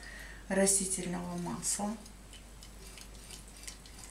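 A whisk scrapes and taps against a bowl while stirring batter.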